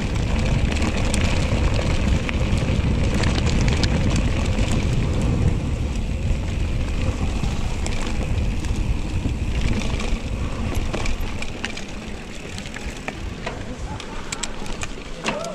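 Bicycle tyres roll and crunch over a rough stony track.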